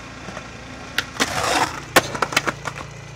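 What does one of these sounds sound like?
A skateboard grinds along a concrete ledge.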